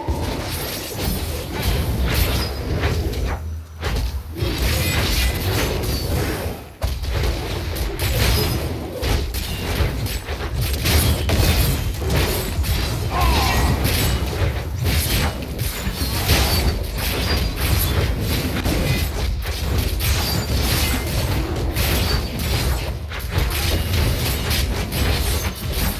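Weapons clash and monsters grunt in a game's fight.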